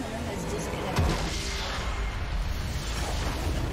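A game's crystal explodes with a loud rumbling blast.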